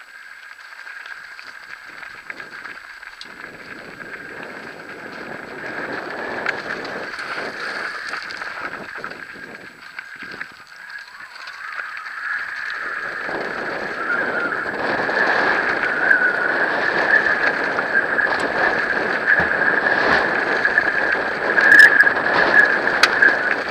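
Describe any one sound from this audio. Bicycle tyres crunch and rattle over a loose gravel track.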